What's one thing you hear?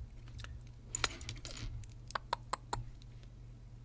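Plastic toy bricks click and snap together.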